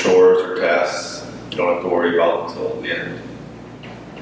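A man speaks calmly and softly close by.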